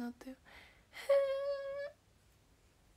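A young woman squeals with delight.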